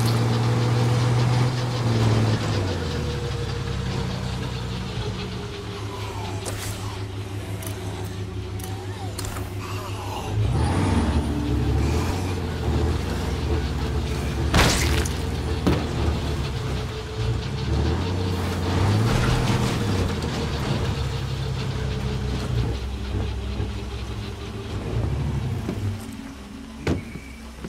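A truck engine rumbles and revs as the truck drives.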